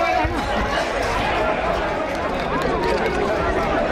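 A large crowd shouts outdoors.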